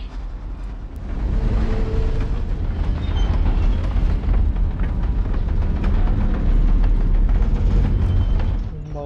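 A heavy door grinds and rumbles as it is pushed.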